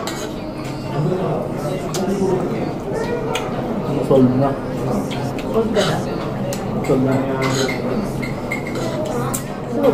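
Cutlery clinks against a plate.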